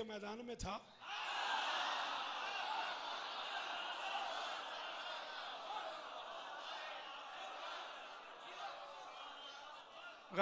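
A large crowd cries out and chants together.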